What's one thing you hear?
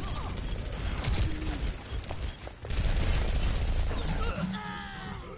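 Rapid gunfire rattles and booms.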